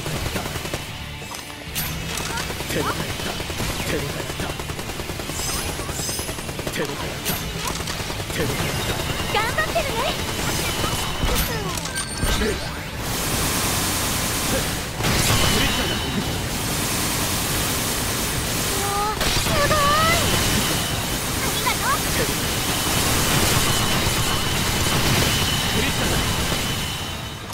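Magic spells crackle and burst in a fast game battle.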